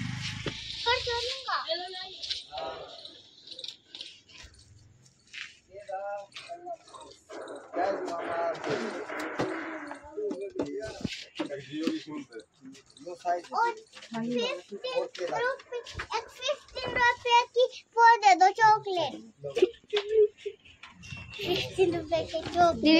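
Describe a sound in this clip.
A young child talks and chatters close by.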